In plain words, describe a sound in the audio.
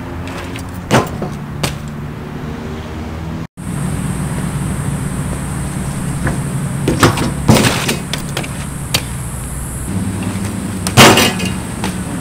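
A bike's wheels knock against a concrete ledge.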